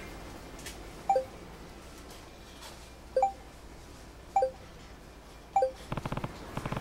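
Short electronic blips sound as messages pop up.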